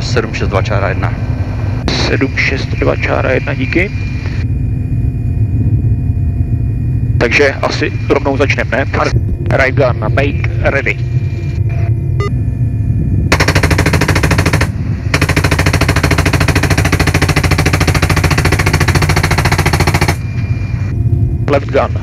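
A helicopter engine and rotor drone steadily throughout.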